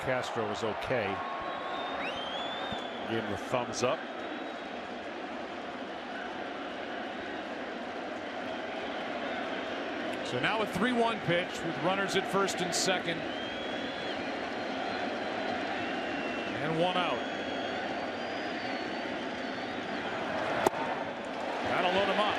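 A large stadium crowd murmurs steadily in the open air.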